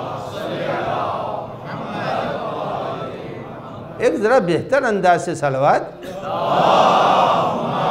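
An elderly man speaks with feeling into a microphone, in a large echoing hall.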